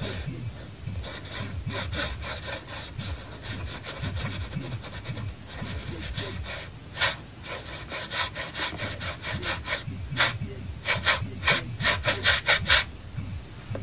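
A pencil scratches quickly across paper.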